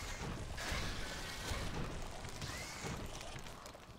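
Flames burst with a roar.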